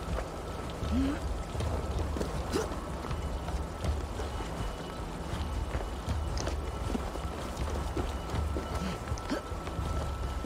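Hands and feet scrape on rock while climbing.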